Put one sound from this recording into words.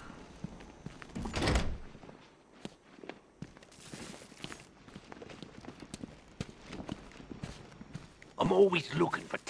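Heavy boots thud on a hard floor.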